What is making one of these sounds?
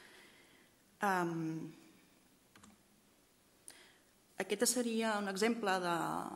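A woman speaks into a microphone, with a slight echo.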